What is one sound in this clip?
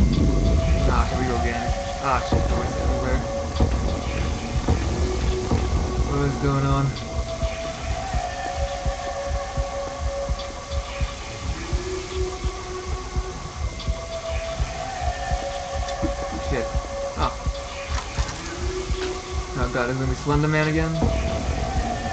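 A young man talks into a microphone close by.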